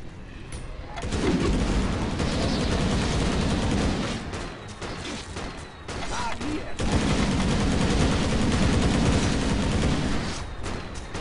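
Loud fighting noises and spell effects clash and crackle.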